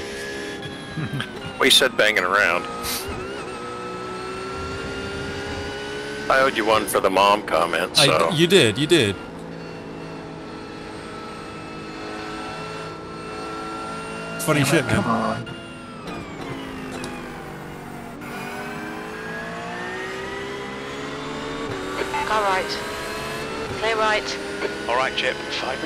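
A race car engine drones steadily, rising in pitch and dropping with each gear change.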